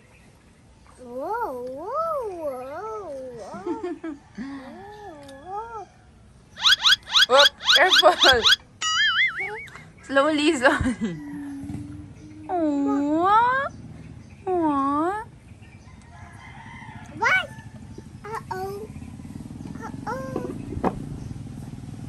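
A toddler girl babbles and squeals in a high, sing-song voice close by.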